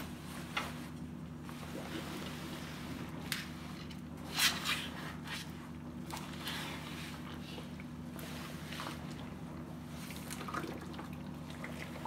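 Wet fabric rustles and splashes as it is pushed into a pot.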